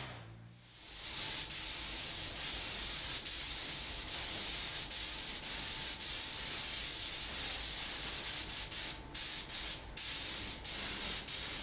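A paint spray gun hisses steadily, stopping briefly now and then.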